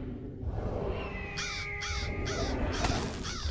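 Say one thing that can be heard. A large bird shrieks.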